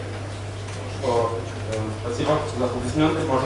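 A man speaks into a microphone, heard through loudspeakers.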